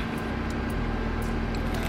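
A young woman chews food with her mouth close by.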